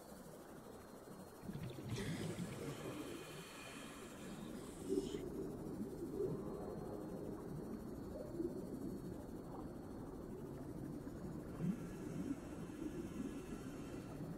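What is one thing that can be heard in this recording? A small submarine's engine hums steadily underwater.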